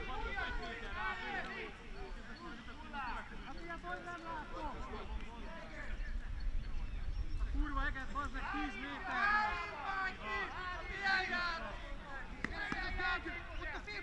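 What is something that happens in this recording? Men's voices call out across an open field in the distance.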